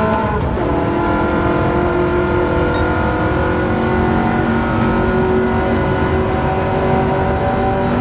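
A racing car engine roars steadily at high speed, its pitch shifting as it changes gear.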